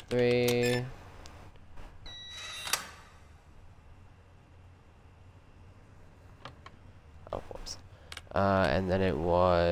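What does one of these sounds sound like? An electronic keypad beeps and buzzes.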